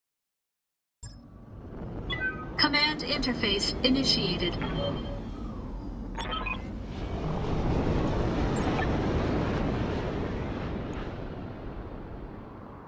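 A spaceship engine roars and hums steadily.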